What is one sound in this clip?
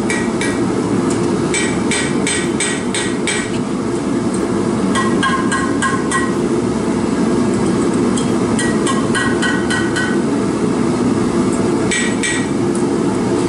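A hammer strikes metal on an anvil with ringing clangs.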